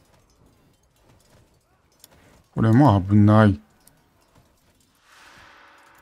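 Swords clash in a small fight.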